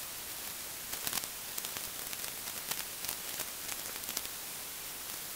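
Tent poles click and clack as a tent is put up.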